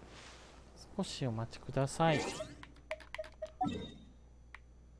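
Bright magical chimes sparkle and shimmer.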